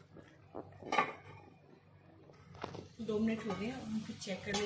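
A steel lid clinks against a pan.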